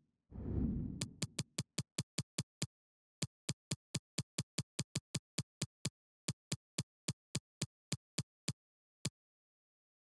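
Short electronic menu ticks sound in quick succession as a list scrolls.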